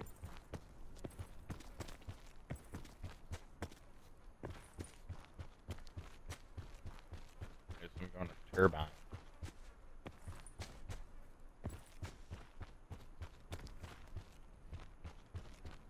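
Footsteps run quickly over dry ground and grass.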